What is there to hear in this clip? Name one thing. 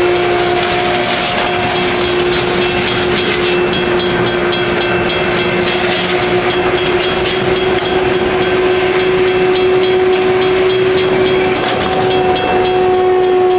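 A heavy train rumbles past close by.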